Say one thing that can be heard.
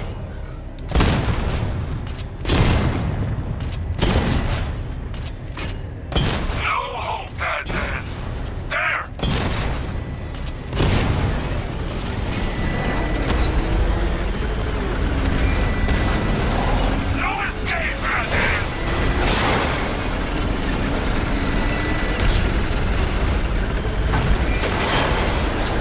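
Heavy blasts and crashes boom loudly now and then.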